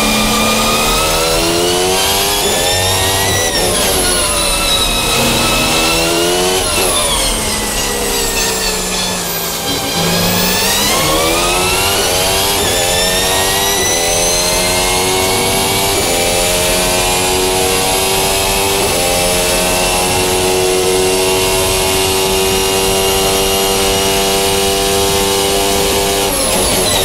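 A racing car engine screams, its pitch rising and falling through the gears as the car brakes and speeds up.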